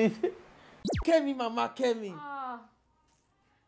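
Two women laugh together.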